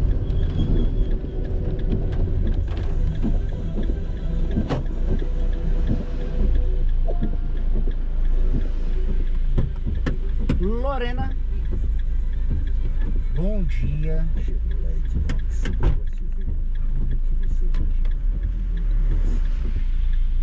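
Windshield wipers sweep across wet glass now and then.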